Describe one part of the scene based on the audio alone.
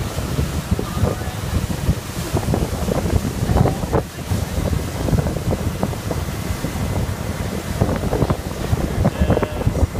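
Young women talk and laugh nearby.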